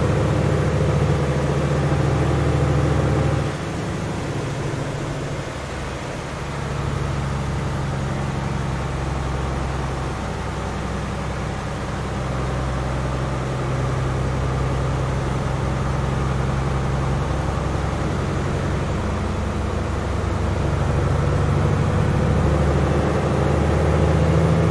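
A heavy truck engine drones steadily, shifting gear now and then.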